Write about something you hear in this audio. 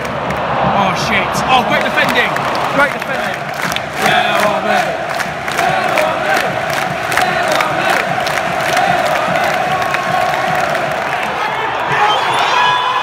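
Fans nearby clap their hands in rhythm.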